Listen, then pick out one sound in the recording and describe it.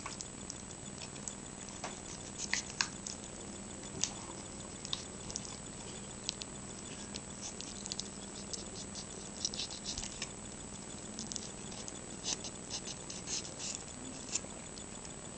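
A knife scrapes and clicks against raw meat and bone on a wooden board.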